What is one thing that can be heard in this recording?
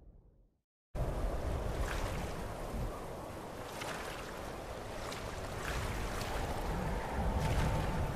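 Water splashes and sloshes as a swimmer moves through it.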